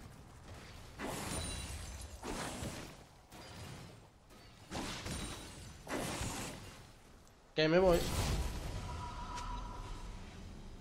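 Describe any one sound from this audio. Game battle sound effects whoosh and clash in short bursts.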